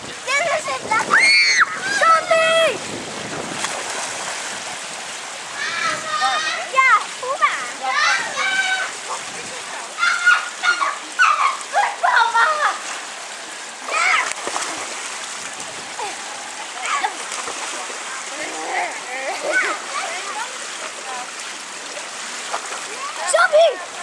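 Children shout and squeal excitedly outdoors.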